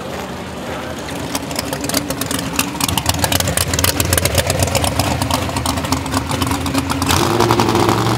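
A drag racing car roars past at full throttle.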